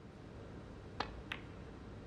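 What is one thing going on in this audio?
A snooker cue strikes the cue ball.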